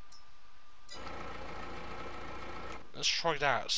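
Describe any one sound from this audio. A tractor engine idles with a low rumble.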